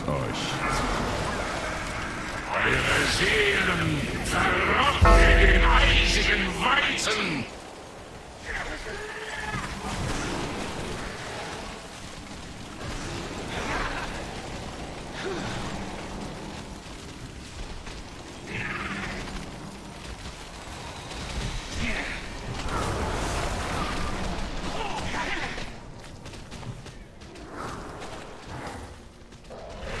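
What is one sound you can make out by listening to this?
Magic spells crackle, whoosh and burst in a battle.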